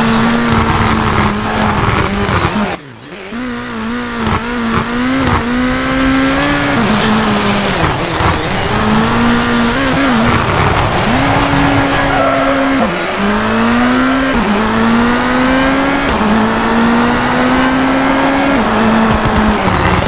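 A turbocharged rally car engine revs hard and shifts through gears.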